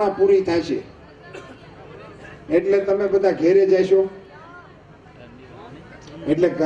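An elderly man speaks forcefully into a microphone over loudspeakers outdoors.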